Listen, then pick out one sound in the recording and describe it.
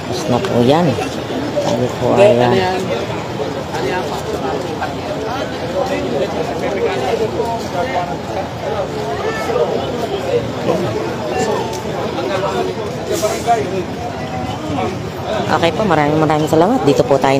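A crowd of men and women talk and shout excitedly nearby, outdoors.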